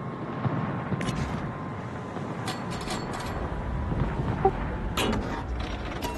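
Distant naval guns boom.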